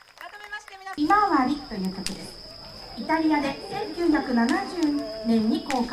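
A woman speaks calmly through a loudspeaker.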